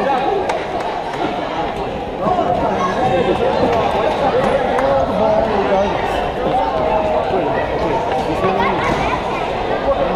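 A crowd of spectators chatters throughout a large echoing gym.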